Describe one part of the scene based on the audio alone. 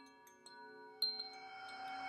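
A singing bowl is struck once with a mallet.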